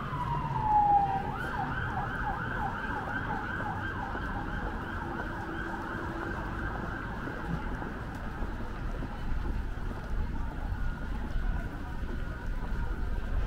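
Footsteps of passers-by tap on a pavement.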